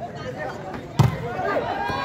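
A volleyball is struck with a sharp thump.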